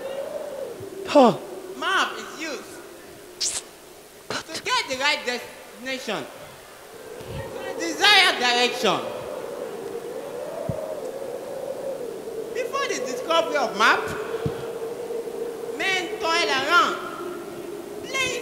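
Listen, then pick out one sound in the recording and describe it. A man speaks with animation through a microphone and loudspeakers in a large echoing hall.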